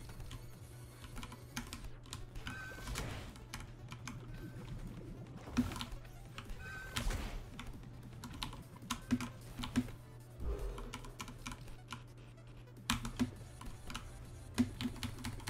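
Short electronic whooshes and chirps sound as a game character jumps and dashes.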